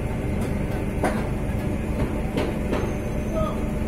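Tools knock and clank now and then at a distance.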